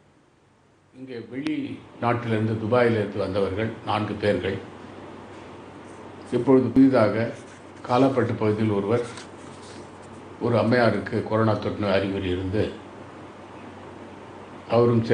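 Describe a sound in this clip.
An elderly man speaks calmly into a nearby microphone.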